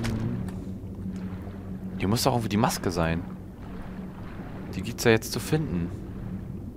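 Water murmurs in a low, steady underwater hum.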